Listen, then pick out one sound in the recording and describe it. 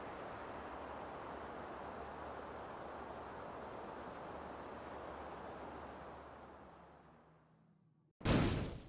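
Wind blows softly outdoors and slowly fades away.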